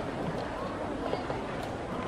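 A chess clock button is pressed.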